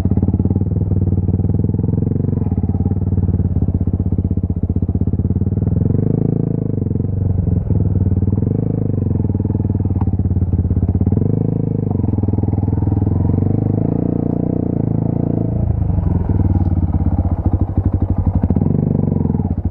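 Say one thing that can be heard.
A motorcycle engine chugs steadily at low speed, close by.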